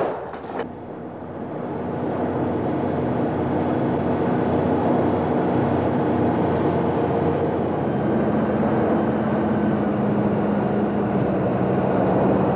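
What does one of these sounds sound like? A boat engine drones steadily as the boat approaches.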